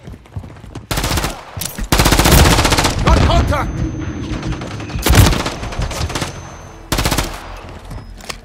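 A rifle fires loud, rapid bursts.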